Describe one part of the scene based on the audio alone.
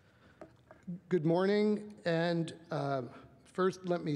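A man speaks calmly through a microphone in a large hall.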